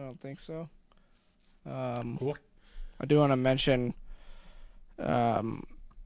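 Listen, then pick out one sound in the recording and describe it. A bearded man speaks calmly and close to a microphone.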